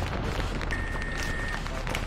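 A machine gun fires in bursts.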